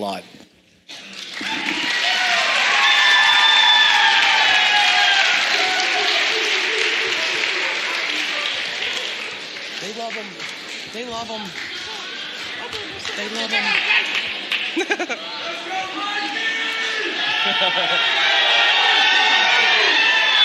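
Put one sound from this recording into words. An audience applauds loudly.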